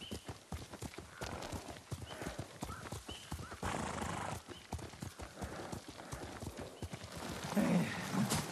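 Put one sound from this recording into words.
Horses' hooves clop slowly on a dirt path.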